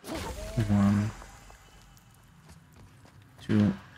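Heavy footsteps thud on stone.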